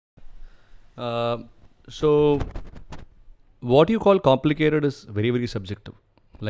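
A man speaks calmly into a handheld microphone.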